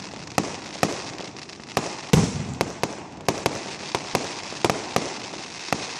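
Fireworks burst overhead with sharp cracks and bangs.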